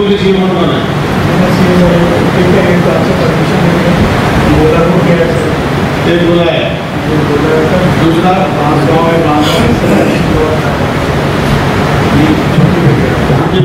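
A man speaks steadily and clearly.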